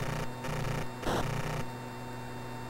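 An explosion bursts in a video game.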